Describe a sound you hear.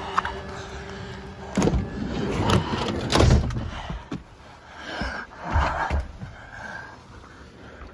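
Rain patters on a car.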